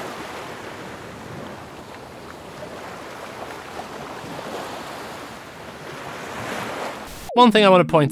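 Ocean waves roll and wash steadily.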